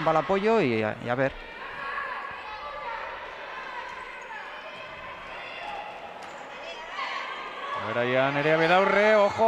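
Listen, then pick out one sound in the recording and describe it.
Sneakers squeak on a hard floor in an echoing hall.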